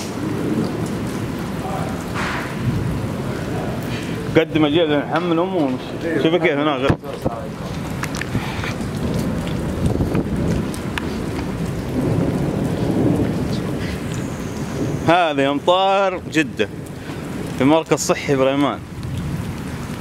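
Heavy rain pours steadily outdoors, splashing on wet pavement.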